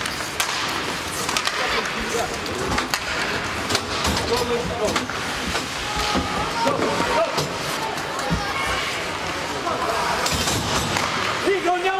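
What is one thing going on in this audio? Hockey sticks clack against a puck and on the ice.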